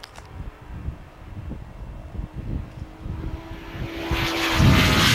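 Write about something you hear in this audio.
Motorcycle engines whine in the distance and grow louder as they approach.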